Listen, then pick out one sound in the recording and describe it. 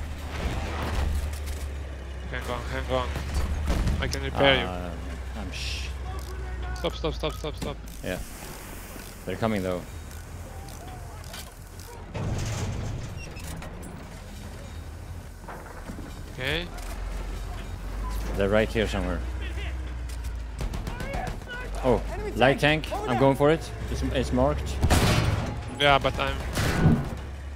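A tank engine rumbles low and deep.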